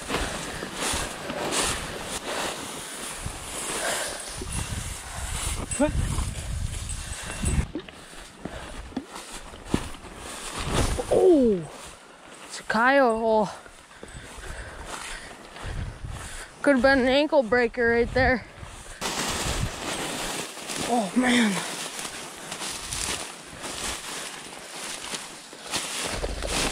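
Dry grass rustles and crunches under close footsteps.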